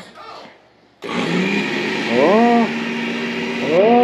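A blender motor whirs loudly, its pitch rising and falling.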